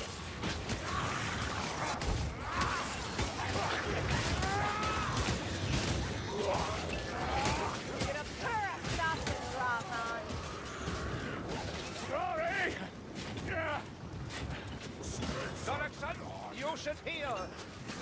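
Creatures squeal and shriek during the fight.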